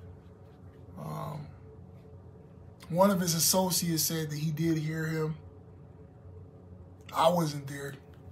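A young man speaks with animation close to a microphone, in short bursts with pauses.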